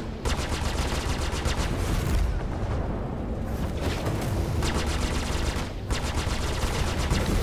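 Ship guns fire in rapid bursts.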